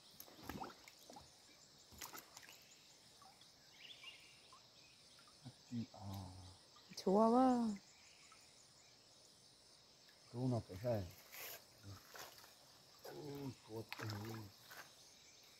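Water splashes softly as a man wades through a river.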